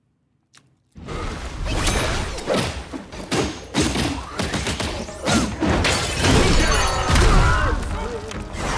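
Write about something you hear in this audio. Heavy weapon blows crash and clang in a fight.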